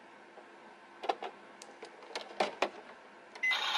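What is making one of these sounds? Plastic clicks and clacks as a toy oven door is opened and closed.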